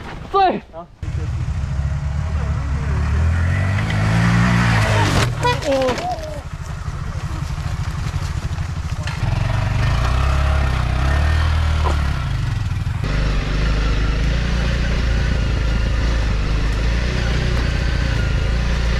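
A motorcycle engine rumbles and revs close by.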